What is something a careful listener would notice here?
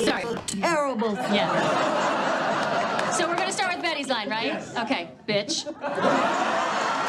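A middle-aged woman talks with animation.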